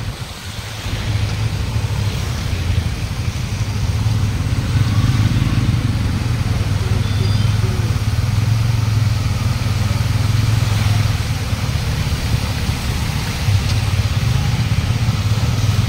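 Tyres splash through water on a flooded road.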